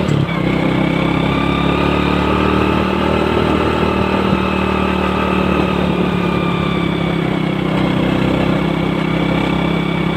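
A small motorbike engine hums steadily at a constant speed.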